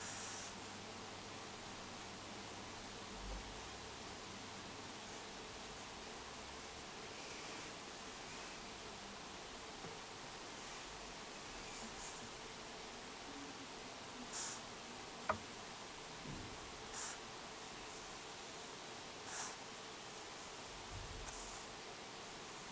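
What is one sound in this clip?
A marker pen taps and dabs softly on paper.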